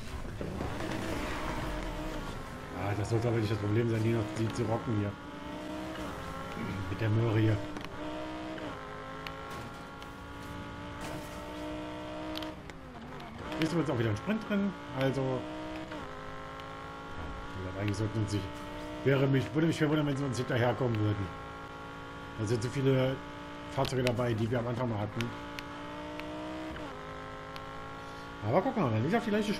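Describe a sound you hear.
A racing car engine roars loudly, revving up again and again as it changes gear.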